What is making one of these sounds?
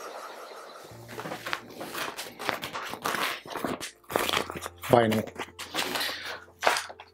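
Foil crinkles and rustles in a man's hands.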